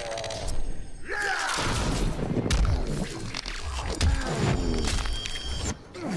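Heavy blows land with loud thuds and crunches.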